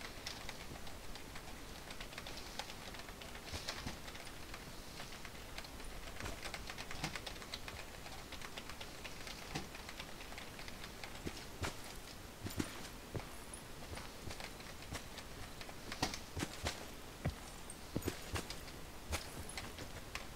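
Footsteps rustle quickly through dry grass.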